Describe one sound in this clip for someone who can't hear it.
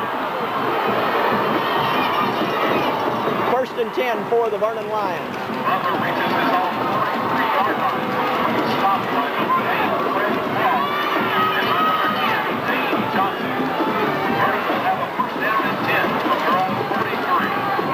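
A stadium crowd murmurs and cheers in a steady roar.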